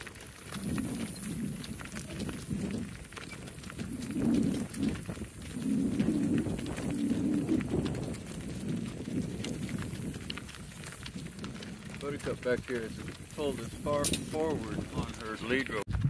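Cart wheels crunch and roll over gravel.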